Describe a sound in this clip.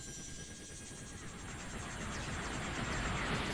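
A whooshing rush of air grows louder.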